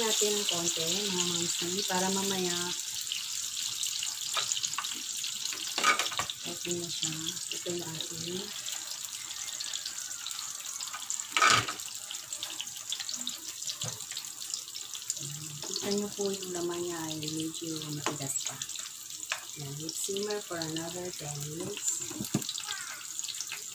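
Food sizzles steadily in hot oil.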